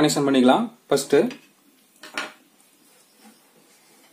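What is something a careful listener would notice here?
A plastic fitting is set down on a table with a light knock.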